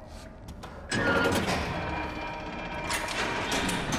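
A heavy metal door creaks and clanks open.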